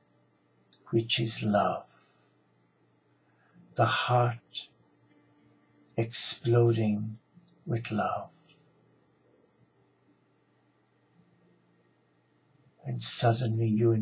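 An elderly man speaks slowly and calmly close to a microphone, with long pauses.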